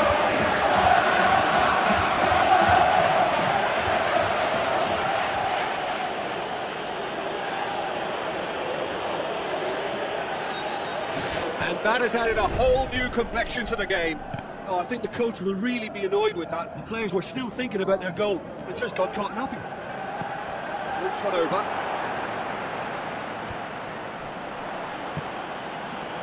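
A large crowd roars and cheers loudly, then settles to a steady murmur.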